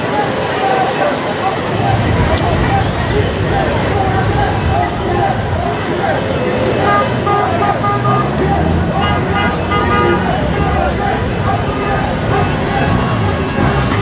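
A crowd cheers and chants outdoors.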